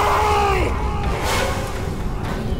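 Blades clash in a brief fight.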